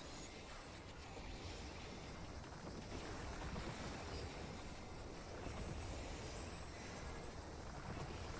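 Magic spell effects crackle and whoosh in a video game battle.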